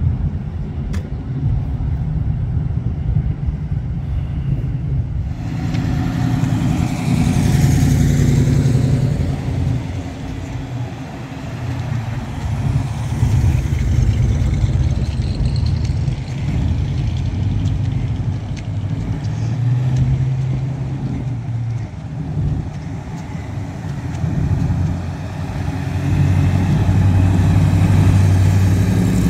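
Classic hot rods drive past slowly, with a deep engine rumble.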